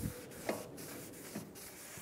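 A rag wipes across a metal wheel hub.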